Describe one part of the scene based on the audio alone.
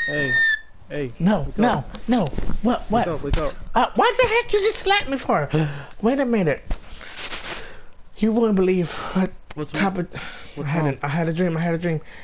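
A man speaks close by in a calm voice.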